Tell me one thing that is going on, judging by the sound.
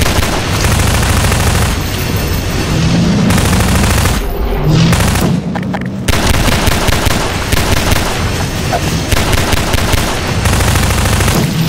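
Explosions boom and debris scatters.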